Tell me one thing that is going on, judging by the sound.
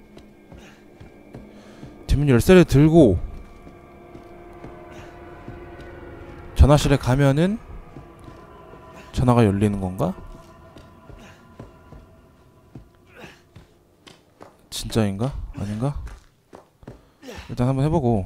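Footsteps creak on wooden stairs and floorboards.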